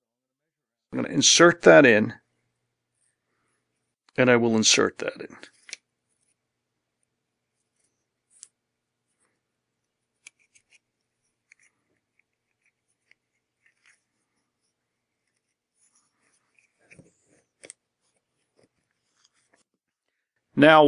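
A cord rustles softly as it is threaded and tied.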